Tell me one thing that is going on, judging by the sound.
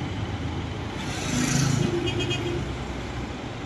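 A motorcycle passes by on a street.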